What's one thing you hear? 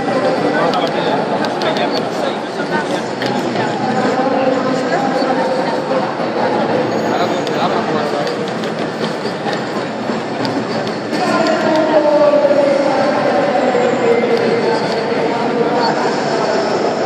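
Fighting game hits and effects play from a loudspeaker.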